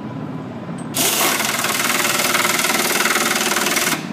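A pneumatic drill runs, driving into timber.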